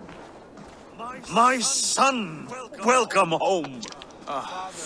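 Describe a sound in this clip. A middle-aged man speaks warmly and loudly, close by.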